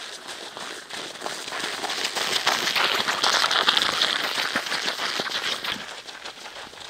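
Footsteps crunch on packed snow as several runners jog past close by.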